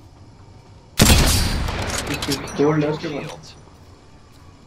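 A rifle fires a single loud shot with a ringing echo.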